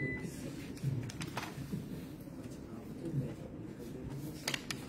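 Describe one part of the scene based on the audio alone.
Paper pages rustle.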